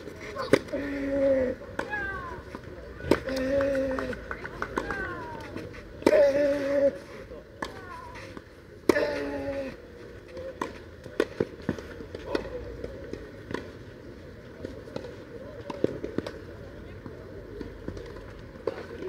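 Rackets strike a tennis ball with sharp pops, back and forth.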